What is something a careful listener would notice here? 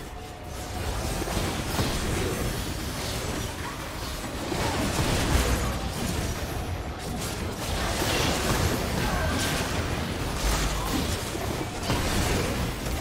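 Clashing spell and weapon effects of a video game battle crackle and boom.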